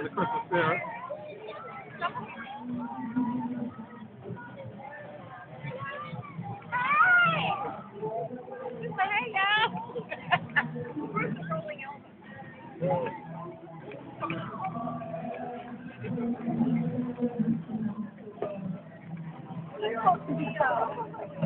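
A crowd of men and women chatters and cheers outdoors along a street.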